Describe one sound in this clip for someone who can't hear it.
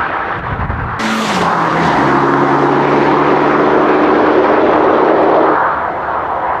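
A car engine hums steadily as the car drives off into the distance.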